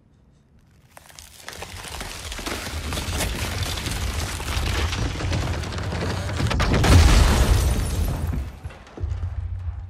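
Ice crackles and spreads with a rushing hiss.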